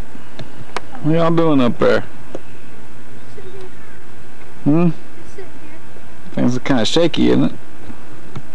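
Two young girls talk and laugh close by.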